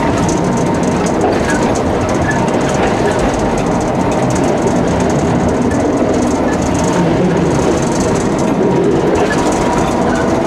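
A tram rumbles and rattles steadily along the rails.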